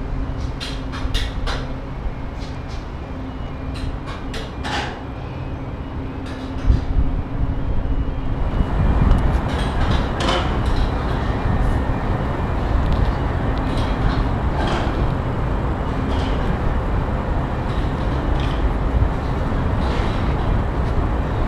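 Wind blusters loudly against the microphone outdoors.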